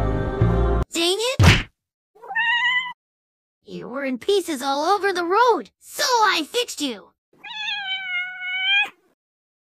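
A young man speaks quickly in a high, cartoonish voice.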